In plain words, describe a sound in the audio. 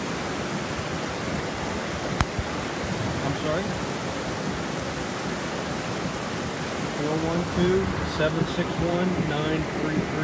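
Rain patters on a car.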